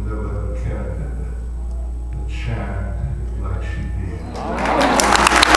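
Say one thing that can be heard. An elderly man speaks into a microphone in an echoing hall.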